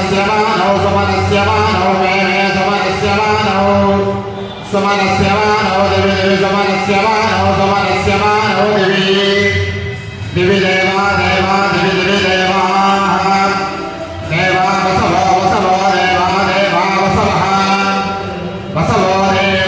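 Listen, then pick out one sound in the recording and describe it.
A man chants in long sung phrases through a loudspeaker.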